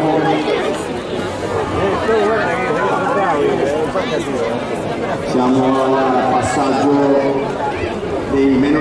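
Inline skate wheels roll and hum on a smooth track.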